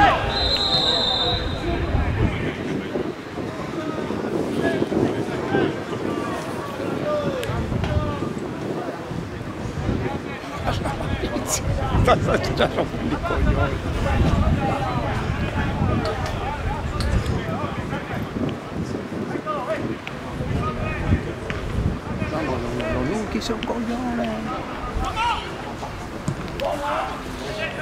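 A small crowd of spectators chatters and calls out outdoors.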